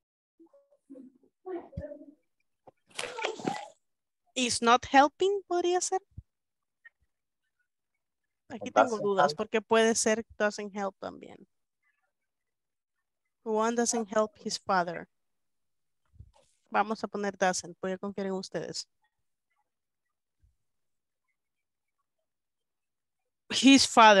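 A woman speaks calmly through a microphone in an online call, in short phrases with pauses.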